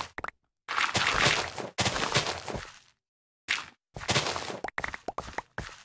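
Dirt crunches and crumbles in bursts as blocks are dug away.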